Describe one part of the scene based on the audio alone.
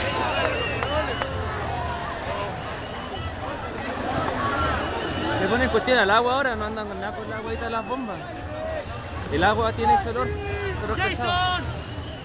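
A crowd of young men and women shouts and talks loudly outdoors, close by.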